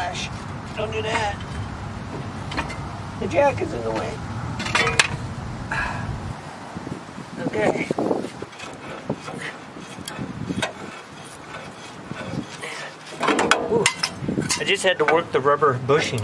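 Metal car parts clink and clank as they are handled.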